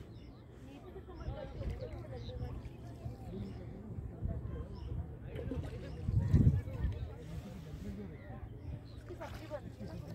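Water laps and splashes against a boat.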